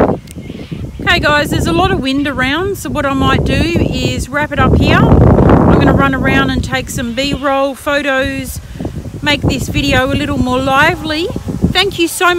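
A woman speaks close to a microphone, calmly and steadily.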